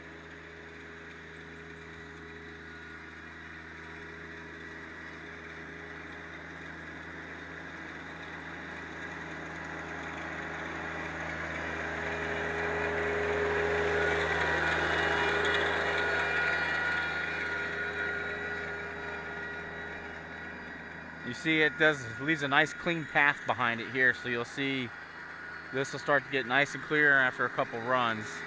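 A small tractor engine hums, growing louder as it drives close and then fading.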